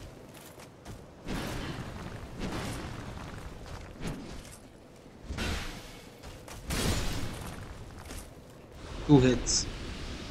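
Heavy weapon swings whoosh through the air.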